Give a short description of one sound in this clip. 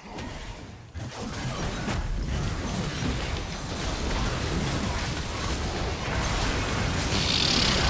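Magic spell effects whoosh and crackle during a fight.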